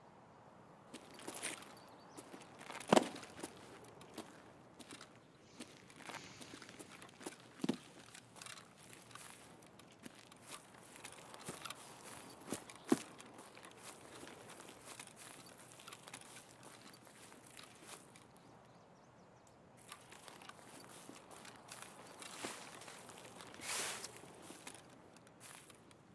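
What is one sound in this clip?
Footsteps swish and rustle through tall grass.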